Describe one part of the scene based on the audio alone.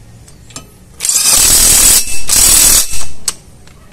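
A cordless impact driver whirs and rattles loudly in short bursts.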